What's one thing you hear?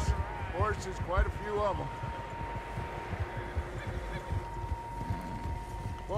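Horses' hooves thud steadily through deep snow.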